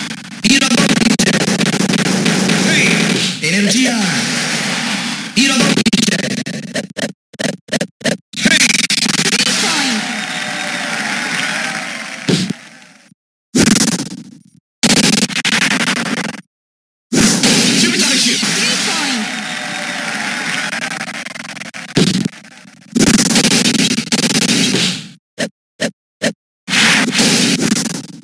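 Electronic arcade game music plays.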